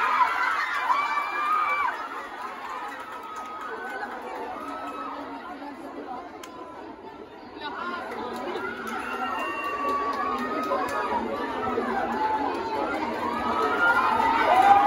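A large group of young performers chants and cheers in the open air.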